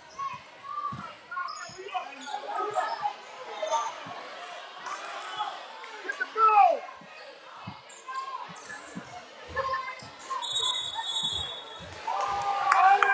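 A crowd chatters and shouts in an echoing gym.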